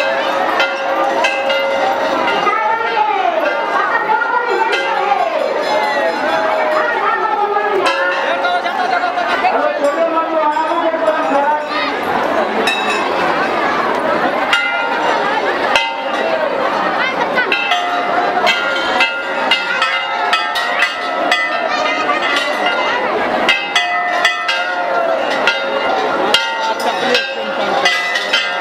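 A large crowd chatters and calls out all around.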